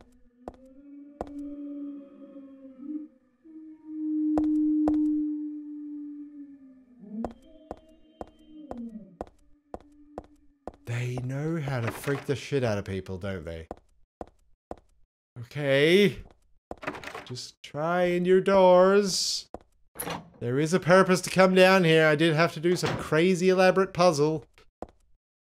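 A man sings and wails loudly and theatrically into a microphone, close up.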